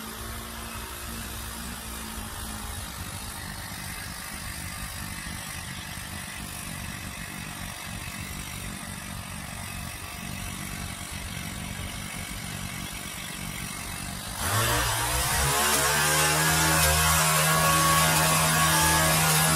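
A pole saw engine drones nearby and grows louder near the end.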